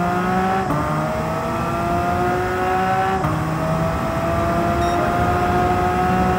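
A car engine roars at high revs, climbing steadily and dropping briefly at each gear change.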